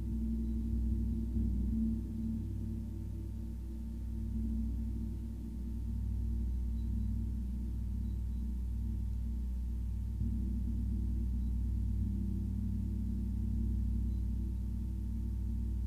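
A large gong hums with a deep, steady, swelling drone.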